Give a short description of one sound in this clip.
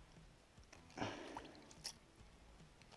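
Slushy ice crunches and splashes in a fishing hole.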